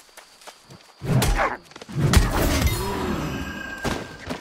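A magic blast bursts with a sharp crackle.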